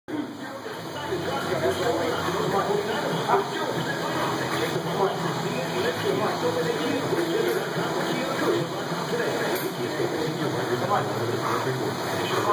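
A young man grunts and strains.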